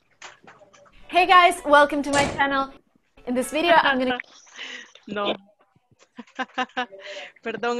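A young woman speaks cheerfully with animation, heard through a computer speaker.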